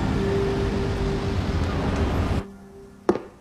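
City traffic hums at night.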